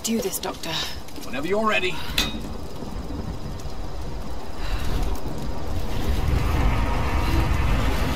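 A heavy wooden crank creaks as it turns.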